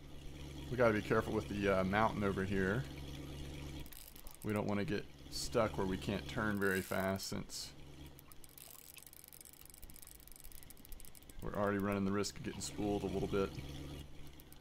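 A fishing reel clicks as its handle turns.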